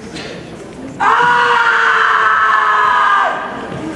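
A young man shouts loudly.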